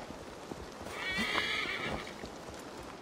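A horse whinnies.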